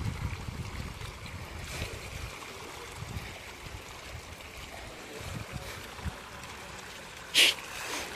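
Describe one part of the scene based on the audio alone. Fish splash and thrash at the surface of a pond.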